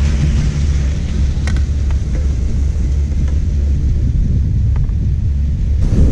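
Wind rumbles steadily against the microphone.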